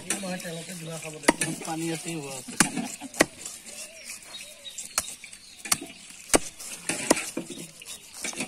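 A heavy blade chops through fish with sharp knocks.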